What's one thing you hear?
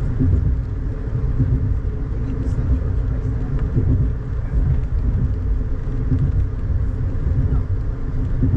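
A car drives along with a steady low rumble, heard from inside.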